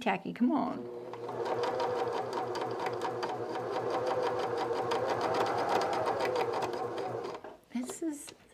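A sewing machine runs with a fast, steady whir.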